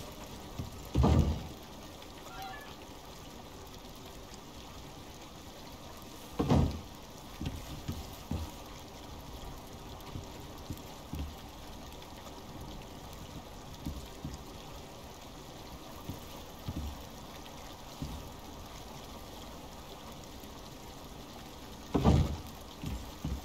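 Heavy wooden beams thud into place with a dull knock.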